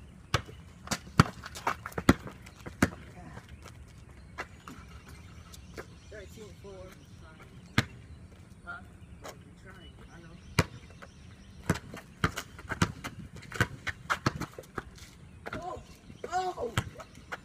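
A basketball bounces on concrete outdoors.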